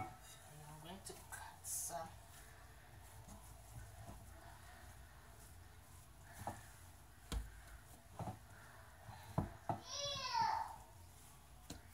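Hands knead and pat dough in a bowl.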